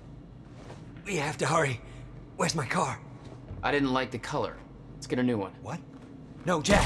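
A man speaks urgently and close by.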